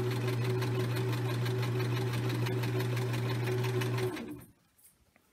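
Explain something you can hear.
A sewing machine hums and clatters rapidly as it stitches.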